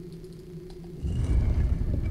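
A heavy metal door rumbles and grinds as it opens.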